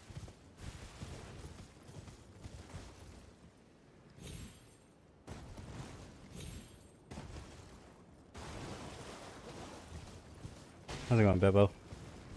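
A horse gallops, its hooves thudding on the ground.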